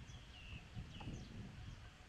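A putter softly taps a golf ball.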